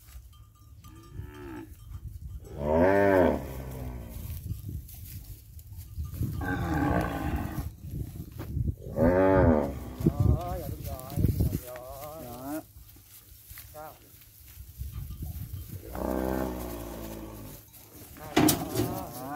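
Cattle moo loudly nearby.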